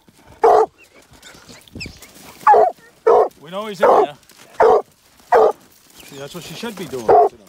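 A dog barks loudly and sharply, close by.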